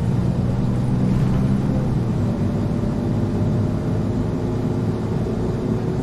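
Tyres roll over a road.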